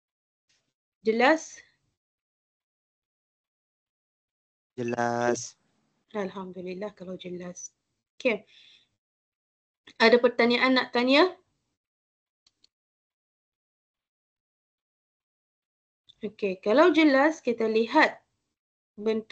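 A woman speaks through an online call, in short bursts with pauses.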